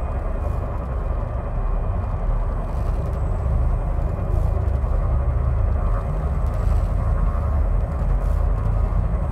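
A spacecraft engine hums with a deep, steady rumble.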